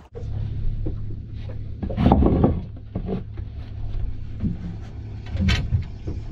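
Bare feet shuffle and thud on wooden floorboards.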